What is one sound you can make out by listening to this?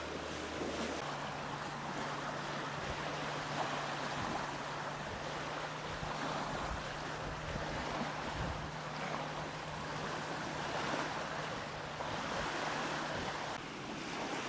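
A motorboat engine drones steadily across the water.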